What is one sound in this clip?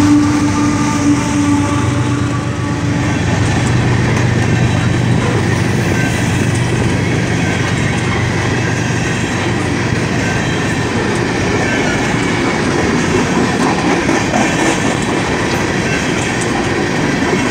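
Steel wheels of coal cars clatter over rail joints.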